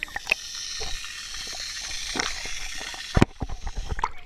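Water gurgles and rushes underwater.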